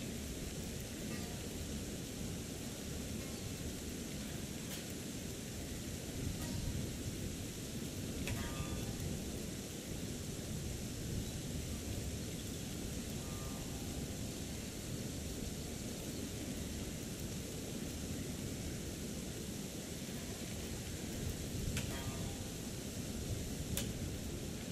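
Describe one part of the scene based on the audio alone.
Water rushes steadily nearby.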